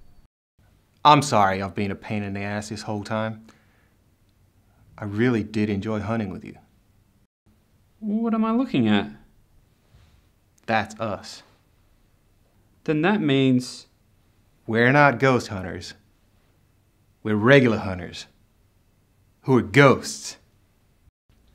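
A man speaks calmly and clearly in short phrases, close by.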